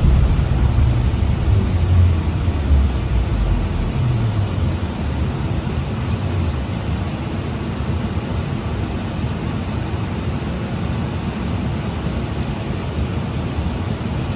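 A bus engine rumbles low and steadily from inside the cabin.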